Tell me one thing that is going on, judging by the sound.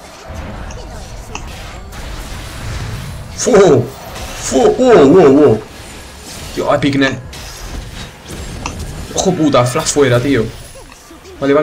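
Magic spells whoosh and crackle in a fight.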